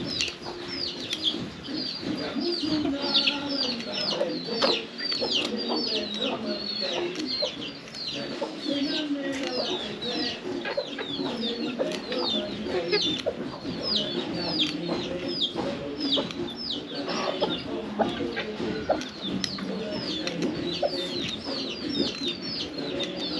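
Hens cluck softly and steadily.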